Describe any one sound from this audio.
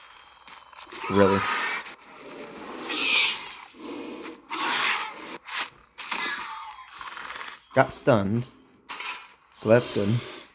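A large creature roars loudly.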